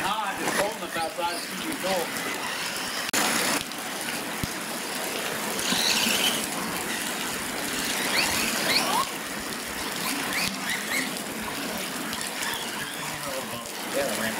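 Tyres of remote-control trucks crunch and splash on wet dirt.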